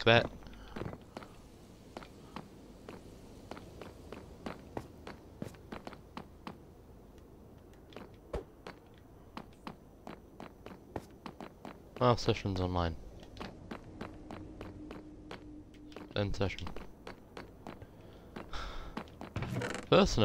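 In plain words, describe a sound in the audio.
Footsteps tap quickly on hard stone.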